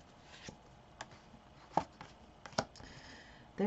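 Playing cards snap and tap as they are handled.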